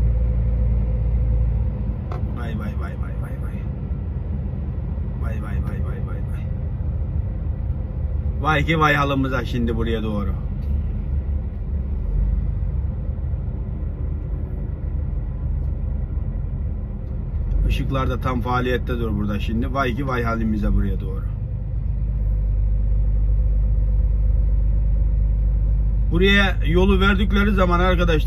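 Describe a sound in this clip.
A truck engine rumbles steadily at highway speed.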